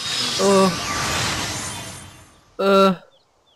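A magical shimmering sparkle sound rings out and slowly fades.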